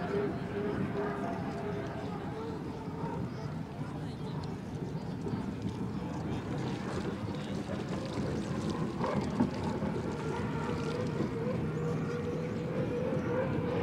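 A racing boat's engine roars loudly and steadily as the boat speeds across the water.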